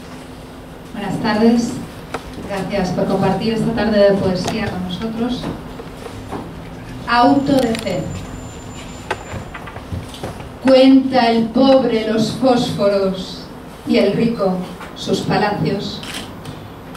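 A woman speaks calmly into a microphone, heard through a loudspeaker in a room with some echo.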